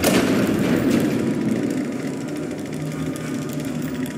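A metal shutter rattles as it rolls open.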